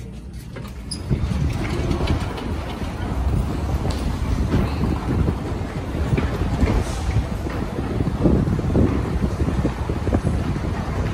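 Footsteps and bustle echo through a large, busy underground hall.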